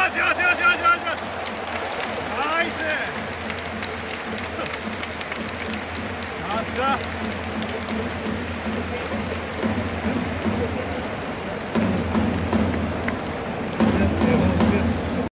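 A large stadium crowd chants and cheers steadily, growing louder near the end.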